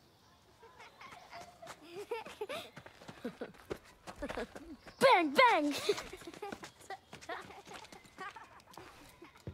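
Children chatter and laugh playfully.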